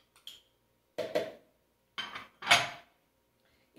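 A bowl clinks as it is set down.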